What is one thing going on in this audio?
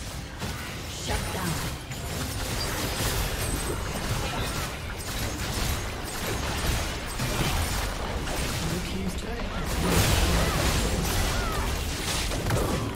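Spell effects whoosh and crackle in a fast game battle.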